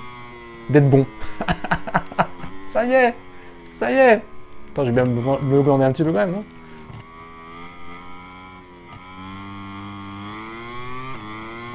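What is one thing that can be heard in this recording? A motorbike engine whines at high revs.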